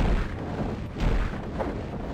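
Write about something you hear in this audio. Lightning crackles and sizzles.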